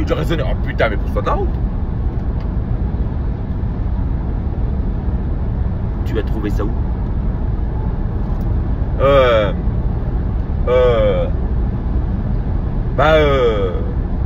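A car engine and road noise rumble steadily.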